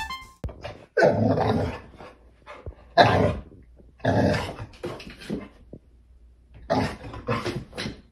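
A dog barks loudly in short bursts.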